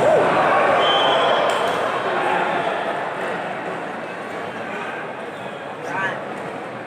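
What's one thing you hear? Sports shoes squeak on the court.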